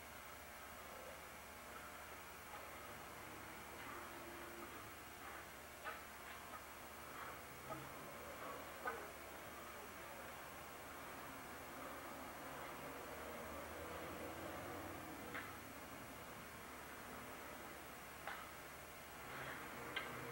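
A wooden staff swishes through the air.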